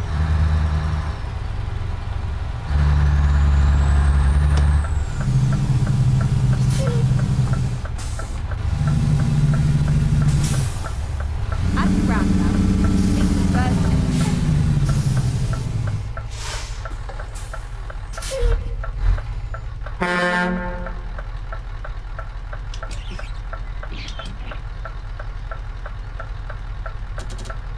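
A truck engine rumbles and revs up and down in bursts, then settles to a low idle.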